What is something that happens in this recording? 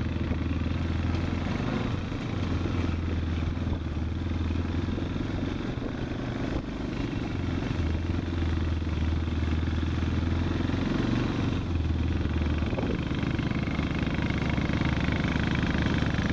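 A quad bike engine hums steadily nearby, rising and falling as it drives.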